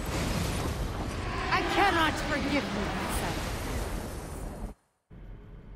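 A magical blast roars and crackles.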